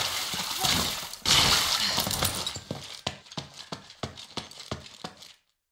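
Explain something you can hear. Quick footsteps run across a stone floor.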